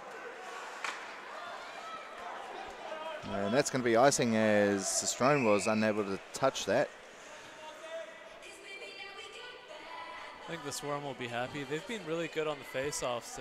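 Skates scrape across the ice in an echoing rink.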